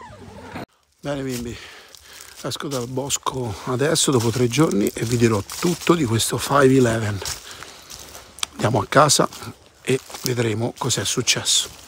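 A middle-aged man talks with animation, close by, outdoors.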